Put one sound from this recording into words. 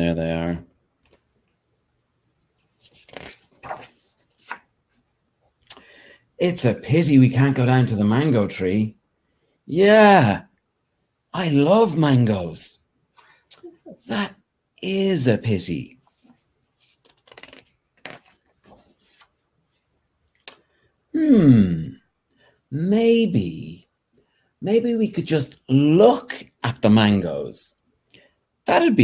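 A man reads aloud with animation, close by.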